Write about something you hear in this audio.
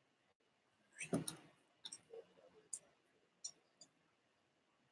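Metal keys click and jingle softly.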